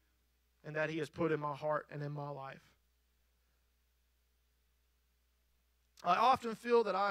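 A man speaks calmly through a microphone in a large hall.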